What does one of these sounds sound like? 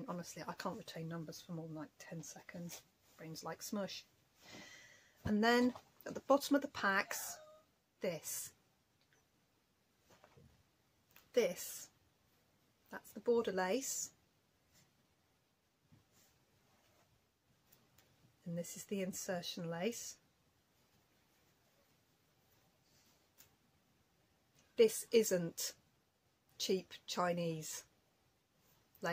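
A woman talks calmly and expressively close by, with pauses.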